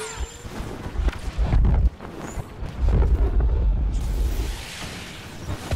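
Deep booming explosions rumble.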